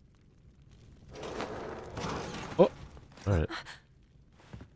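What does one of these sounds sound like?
A creature screeches and thrashes.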